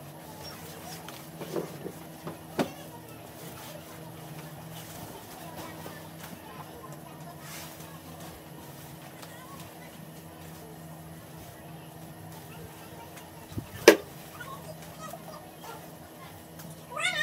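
Fabric rustles and flaps as it is shaken out.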